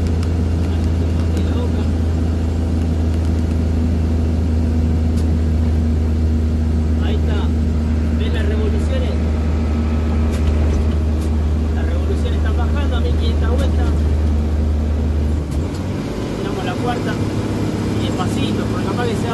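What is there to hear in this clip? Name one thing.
An old engine drones steadily as a vehicle drives along a highway.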